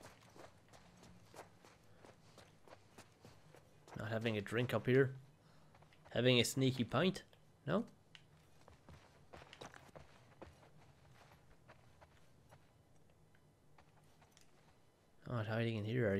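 Footsteps walk softly across a wooden floor.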